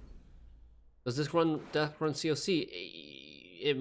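A young man talks into a microphone with animation, close up.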